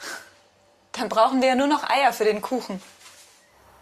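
A young woman answers calmly nearby.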